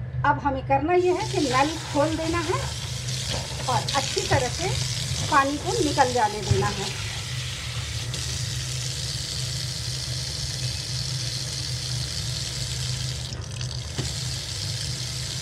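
Water pours steadily from a tap into a sink.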